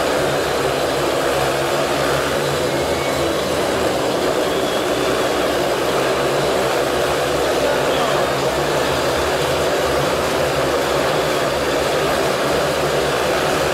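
Motorcycle engines roar loudly and steadily.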